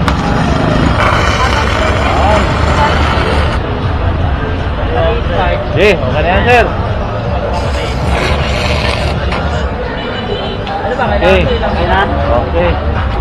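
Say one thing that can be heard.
An electric welding arc crackles and hisses in bursts.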